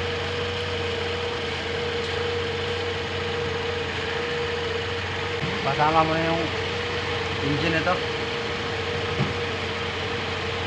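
A car engine idles with a steady hum.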